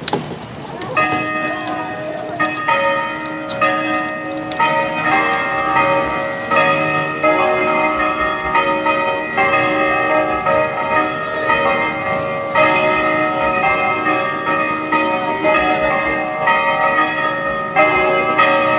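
A crowd of men and women sings together as it walks.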